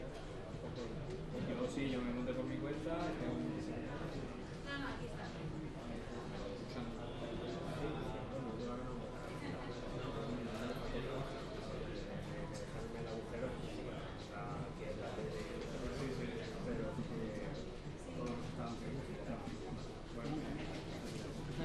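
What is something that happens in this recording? A man speaks over a loudspeaker in a large echoing room.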